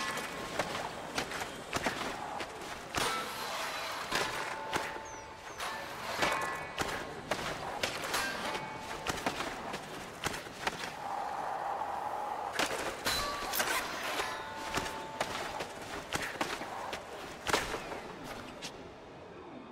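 Skateboard wheels roll and clack with quick landings.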